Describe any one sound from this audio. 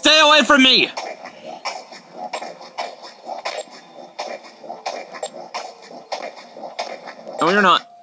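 A game counter ticks quickly from a small speaker.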